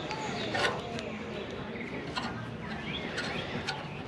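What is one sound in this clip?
Metal hangers scrape and click along a rail.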